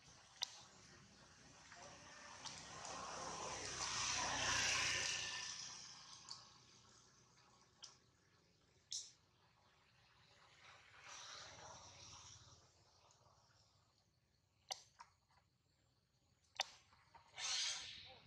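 A fruit's spiky husk rustles as monkeys handle it.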